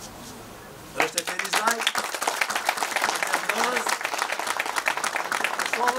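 An audience applauds and cheers loudly.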